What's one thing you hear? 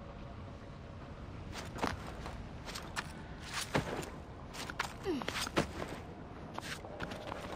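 Light knocks and scrapes of someone climbing on stone and wood sound now and then.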